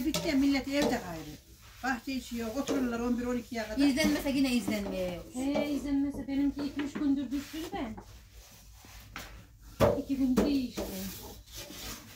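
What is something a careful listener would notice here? A woman speaks nearby.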